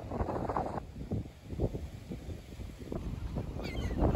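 Seagulls call over a beach.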